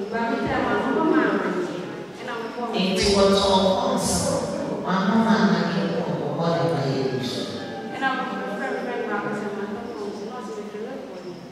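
A girl speaks into a microphone.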